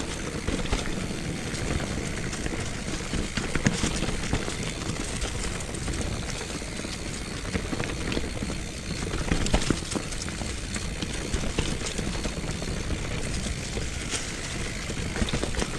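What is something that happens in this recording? Bicycle tyres roll and crunch over dry leaves and a rough dirt trail.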